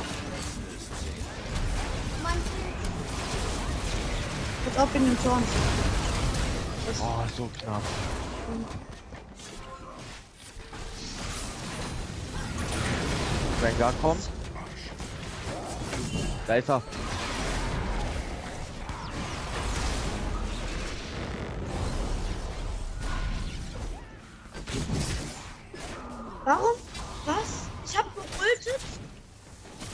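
Spell blasts and weapon strikes clash loudly in a video game battle.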